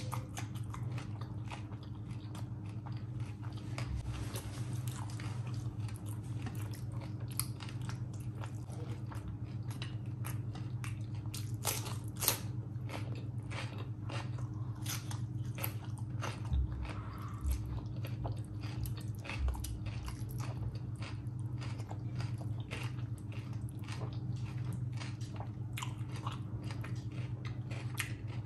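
A woman chews and smacks her lips loudly, close up.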